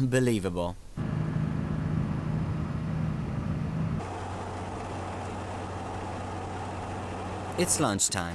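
A car engine hums steadily while driving on a road.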